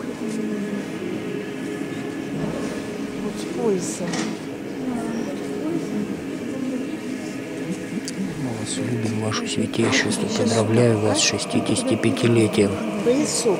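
A middle-aged man talks close by, in a large echoing hall.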